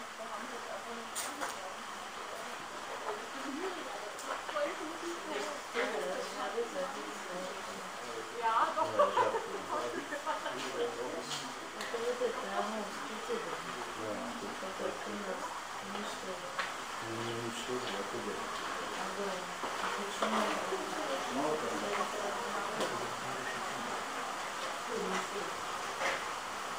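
A tiger growls and snarls close by.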